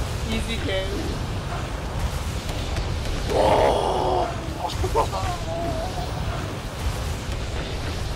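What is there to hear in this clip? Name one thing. Fiery explosions crackle and boom in a game.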